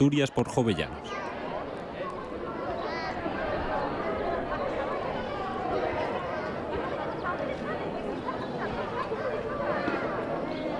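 Many people chatter and talk at once outdoors, with a busy murmur of voices.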